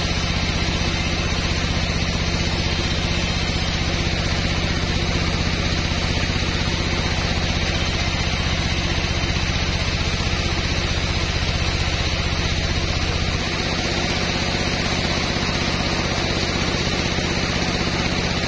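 A sawmill band saw hums and cuts through a large log.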